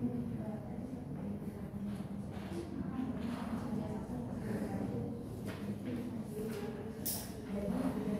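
Young people talk quietly among themselves in an echoing room.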